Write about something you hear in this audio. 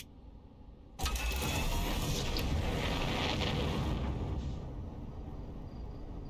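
A spaceship engine roars and rumbles during liftoff.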